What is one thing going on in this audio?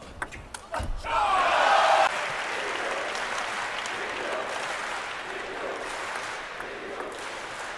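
A crowd in a large arena cheers and applauds.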